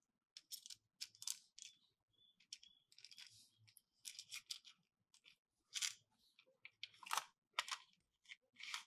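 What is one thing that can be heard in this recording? Plastic parts click and clatter as they are snapped together.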